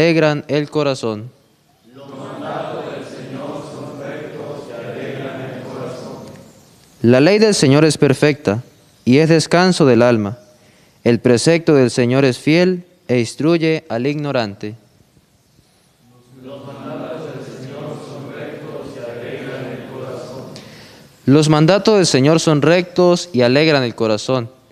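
A young man reads aloud calmly through a microphone, with pauses.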